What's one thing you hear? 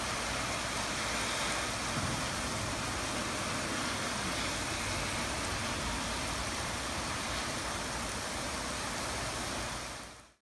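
Wind gusts and roars.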